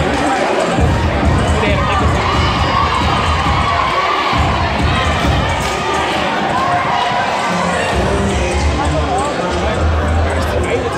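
A large crowd cheers and chatters loudly in a big echoing gym.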